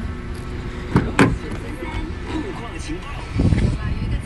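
A car door unlatches with a click and swings open.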